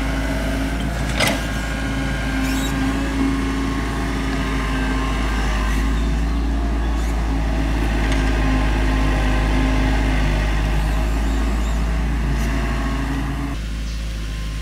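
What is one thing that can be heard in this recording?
An excavator bucket scrapes and thuds into soil.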